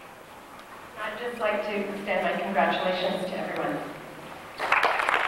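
A woman speaks into a microphone over a loudspeaker, echoing in a large hall.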